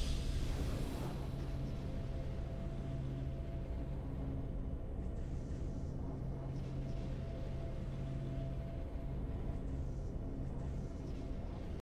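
A soft, triumphant tune plays steadily.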